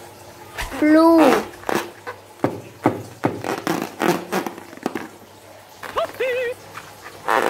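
A water balloon squishes and creaks as hands squeeze it.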